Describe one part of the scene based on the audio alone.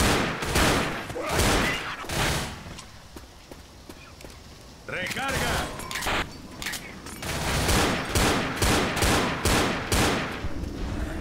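Pistols fire rapid shots.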